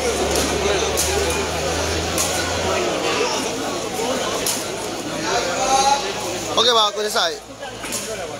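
A player kicks a rattan takraw ball.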